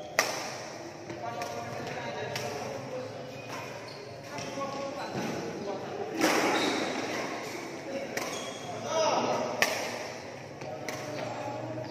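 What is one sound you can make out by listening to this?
A badminton racket strikes a shuttlecock with sharp pops that echo around a large hall.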